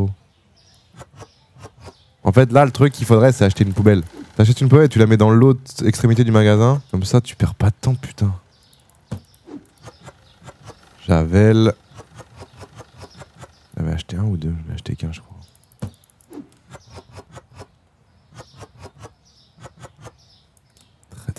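Keys and a mouse click rapidly and repeatedly.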